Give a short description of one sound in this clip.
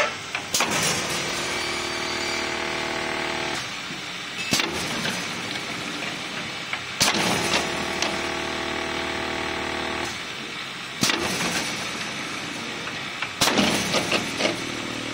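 Metal parts clank and knock on a conveyor line.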